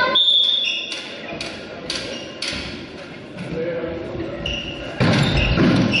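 A volleyball is struck with sharp smacks in an echoing hall.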